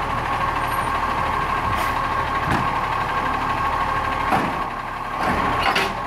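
A garbage truck engine runs with a steady whine.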